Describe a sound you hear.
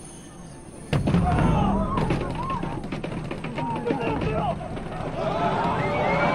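A crowd of people shouts and clamours in alarm.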